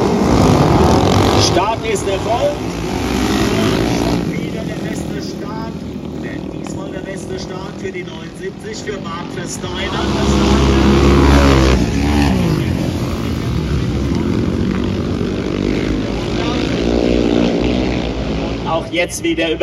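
Several motorcycle engines roar loudly and rise and fall in pitch as the bikes race past.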